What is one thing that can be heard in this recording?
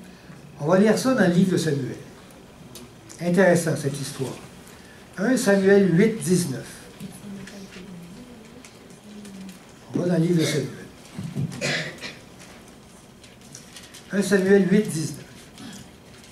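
A middle-aged man speaks calmly in short phrases through a headset microphone, with pauses between them.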